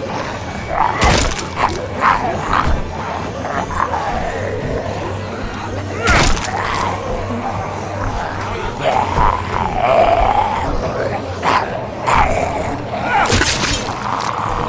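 Heavy blows land with loud thuds.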